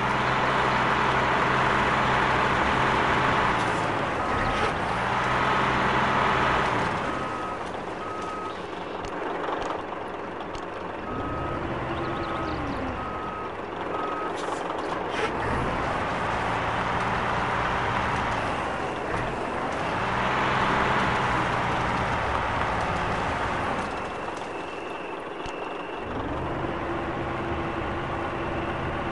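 A heavy diesel engine rumbles and revs up and down.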